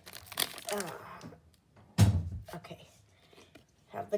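Stiff cards rustle and slide against each other.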